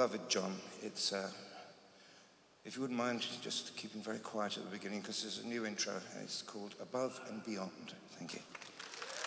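A man speaks calmly into a microphone, heard over loudspeakers in a large hall.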